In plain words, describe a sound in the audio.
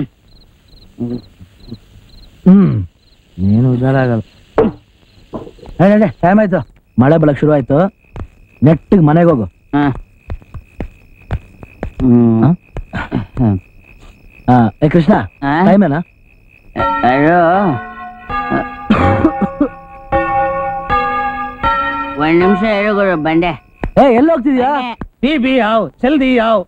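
Two men talk with animation, close by.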